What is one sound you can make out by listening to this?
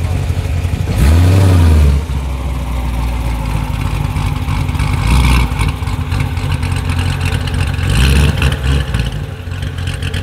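A sports car engine revs sharply in loud bursts.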